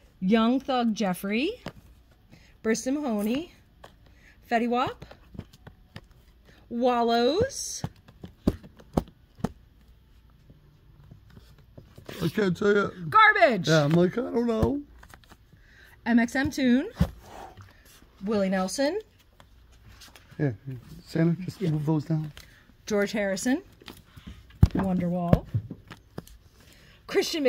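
Record sleeves tap and clack against each other as they are flipped through.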